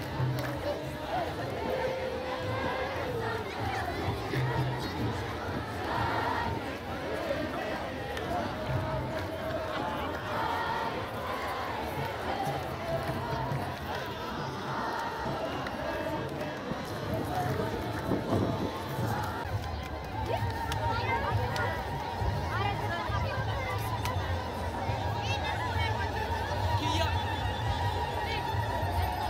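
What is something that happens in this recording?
Many voices murmur and call out nearby in a crowd.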